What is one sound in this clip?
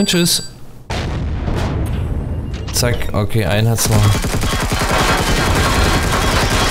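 Gunfire blasts in rapid bursts.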